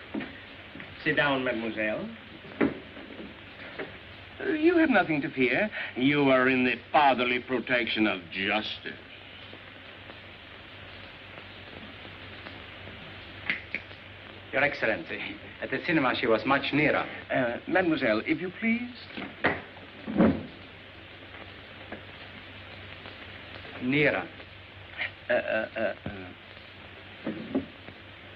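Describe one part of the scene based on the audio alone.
An elderly man speaks calmly and steadily.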